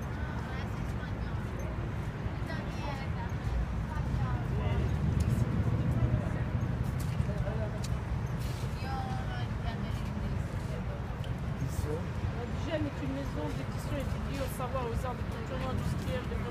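People murmur quietly nearby outdoors.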